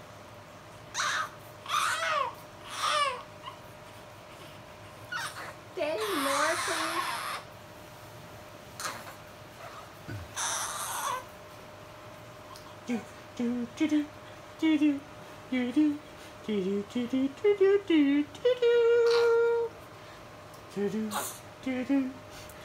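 A baby fusses and whimpers close by.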